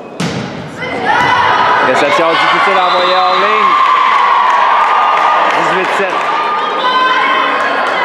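Spectators cheer and shout loudly.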